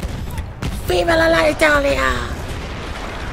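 A man exclaims with excitement close to a microphone.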